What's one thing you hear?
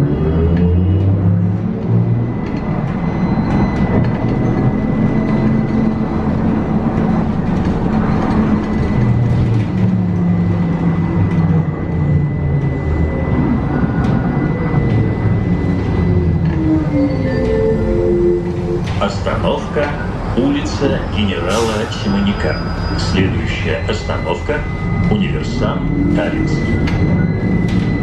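A vehicle's electric motor hums and whines, rising and falling in pitch as it travels.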